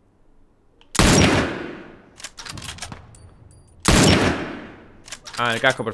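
A rifle fires loud shots that echo away.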